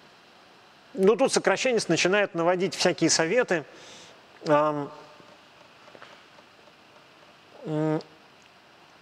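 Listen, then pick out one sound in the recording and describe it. A middle-aged man speaks into a close microphone in short bursts, with pauses.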